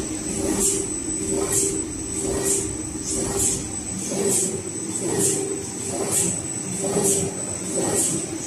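A high whine rings steadily from the machine.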